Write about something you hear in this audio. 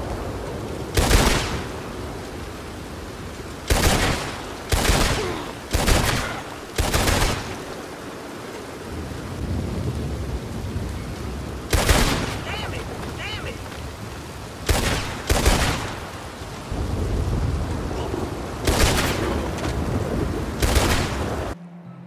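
Gunshots ring out loudly, one after another, with a short echo.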